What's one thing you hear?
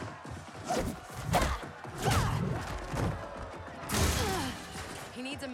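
Blows thud and bodies slam in a fight.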